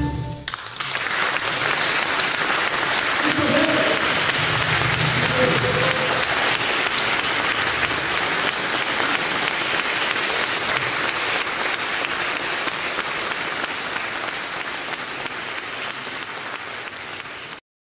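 An audience claps and applauds in a large echoing hall.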